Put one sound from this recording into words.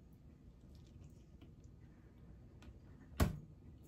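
A woman chews food quietly.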